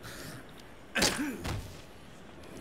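A heavy door thuds as it is pushed open.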